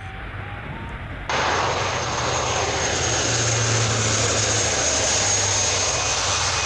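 Turboprop engines of a large plane roar loudly as it flies low overhead.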